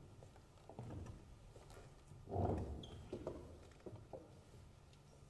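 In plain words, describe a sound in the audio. Footsteps and chairs shuffle on a wooden stage.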